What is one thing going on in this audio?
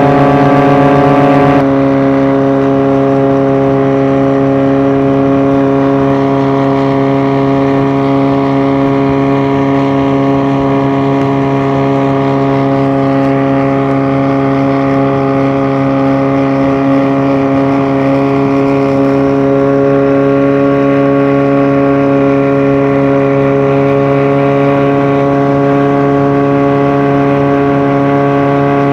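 Water churns and splashes in the boat's wake.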